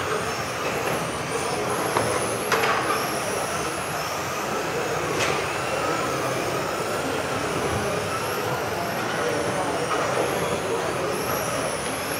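Small electric motors of remote-control cars whine and rev up and down in a large echoing hall.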